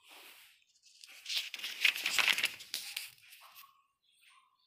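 A paper page rustles and crinkles as it is turned.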